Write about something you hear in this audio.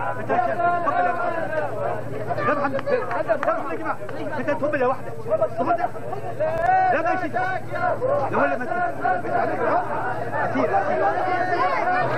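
A large crowd of men chants and sings together loudly outdoors.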